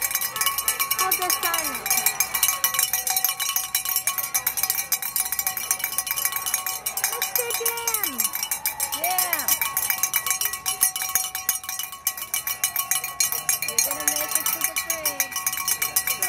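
Spectators cheer and whoop at a distance outdoors.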